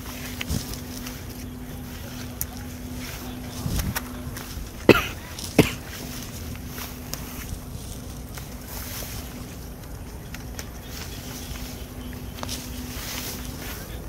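Leaves rustle as a hand brushes through vines.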